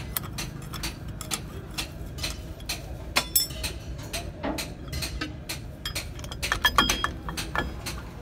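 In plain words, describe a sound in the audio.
Metal parts clink and tap close by.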